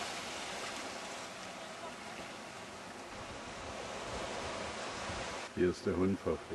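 Small waves wash gently onto a sandy shore.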